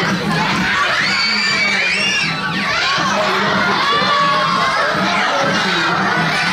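Children shriek and squeal with excitement.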